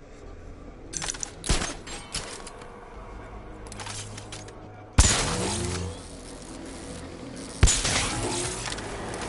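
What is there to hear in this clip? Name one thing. Electric charges crackle and zap in sharp bursts.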